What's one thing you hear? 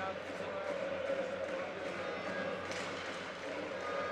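Hockey sticks clack against the puck and each other at a faceoff.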